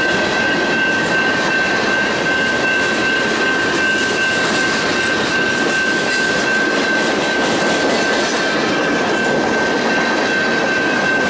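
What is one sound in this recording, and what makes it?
A freight train's cars rumble and clatter close by along the rails.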